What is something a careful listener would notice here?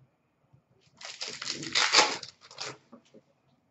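A foil wrapper crinkles and tears as a card pack is opened.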